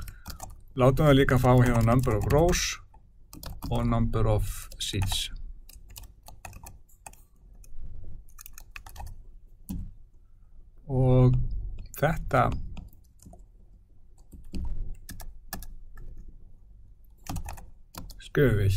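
Keys click quickly on a keyboard.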